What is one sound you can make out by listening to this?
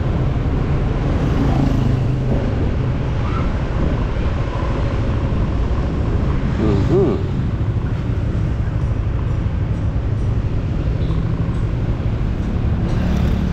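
Wind rushes past.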